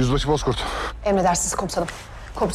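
A young woman speaks into a phone.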